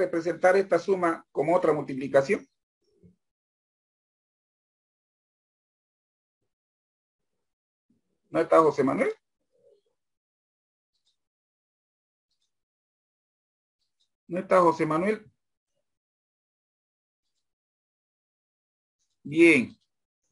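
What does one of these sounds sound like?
A man speaks through an online call in short bursts with pauses between.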